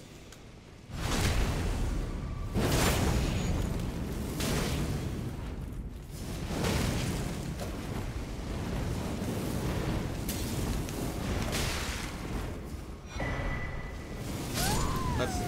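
Fire roars in loud bursts during a fight.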